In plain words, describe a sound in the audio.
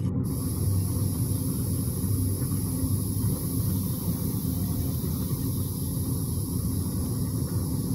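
Wind blows steadily through dense foliage outdoors.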